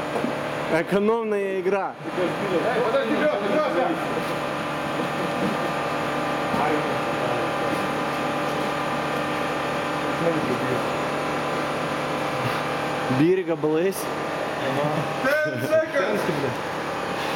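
Young men talk loudly nearby.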